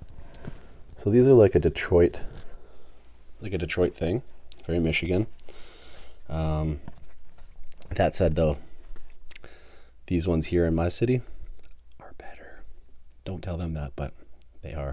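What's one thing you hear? A man speaks softly and closely into a microphone.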